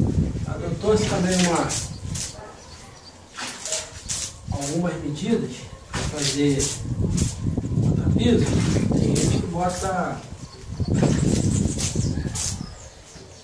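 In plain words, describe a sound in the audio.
Water splashes in a bucket.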